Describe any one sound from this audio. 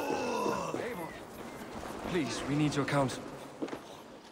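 A man calls out urgently.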